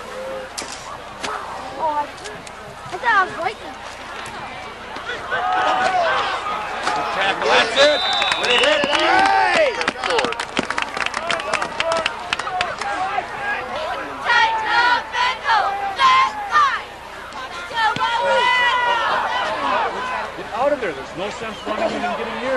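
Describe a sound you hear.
A crowd cheers and shouts in an open-air stadium.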